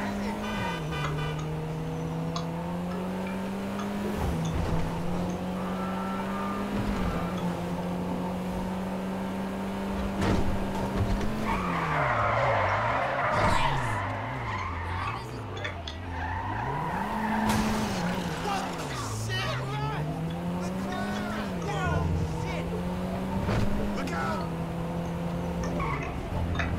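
A small car engine hums and revs up and down as it drives.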